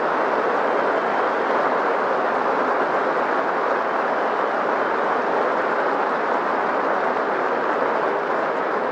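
A large stadium crowd cheers and applauds steadily.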